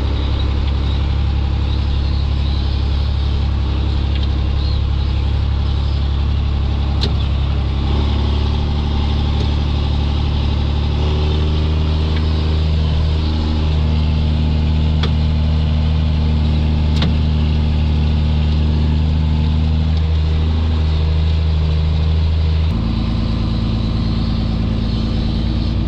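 A tractor engine drones loudly and steadily from inside the cab.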